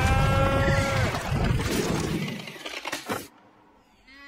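A cable whips and snaps sharply.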